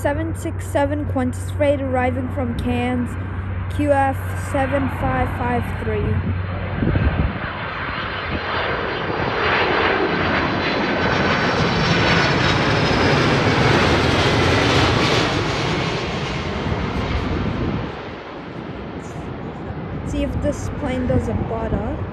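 A jet airliner roars overhead, growing louder as it passes close by and then fading.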